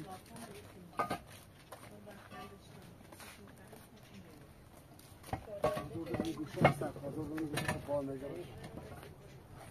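Concrete blocks knock and clack against each other as they are stacked.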